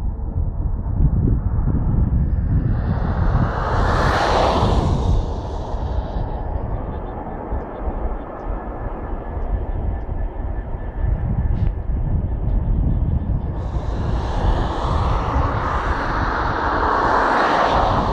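A Class 66 two-stroke diesel locomotive rumbles as it approaches.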